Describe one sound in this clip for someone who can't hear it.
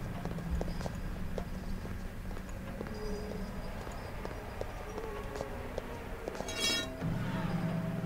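Footsteps thud on a stone floor.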